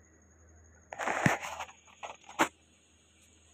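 A metal ladle scrapes and clinks against a metal pot.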